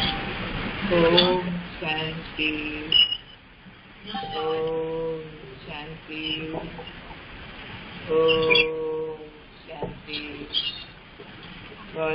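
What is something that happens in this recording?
An elderly woman speaks calmly into a microphone, heard through an online call.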